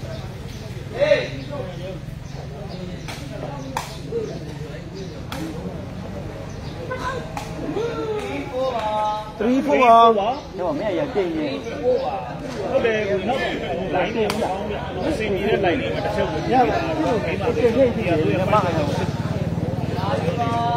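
A crowd of men talks and shouts nearby.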